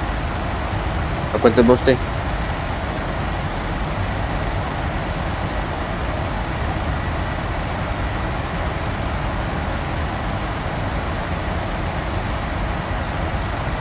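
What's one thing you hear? A jet engine hums steadily inside a cockpit.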